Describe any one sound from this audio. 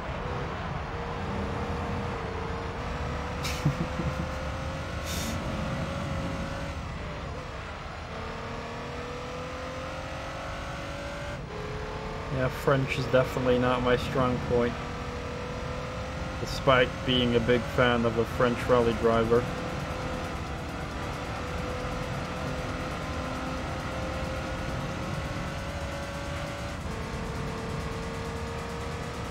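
A racing car engine drones and revs steadily through gear changes.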